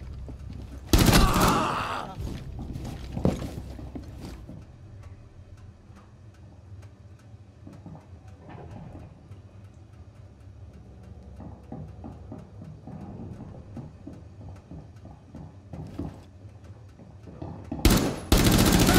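A rifle fires short, loud bursts.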